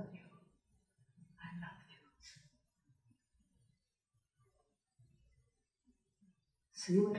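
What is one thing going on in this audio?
An elderly woman speaks calmly through a microphone.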